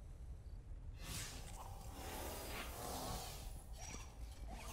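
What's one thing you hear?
A bright magical shimmer whooshes up and swirls.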